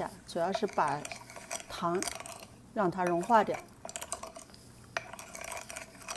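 A spoon stirs and clinks against a bowl.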